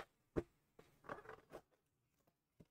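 A cardboard flap scrapes open.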